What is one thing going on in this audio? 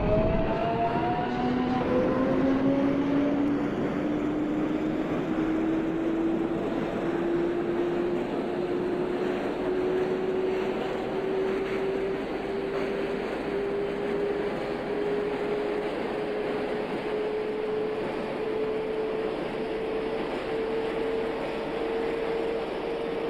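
An electric train's motors whine, rising slowly in pitch as the train speeds up.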